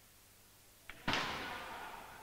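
A cue strikes a billiard ball sharply.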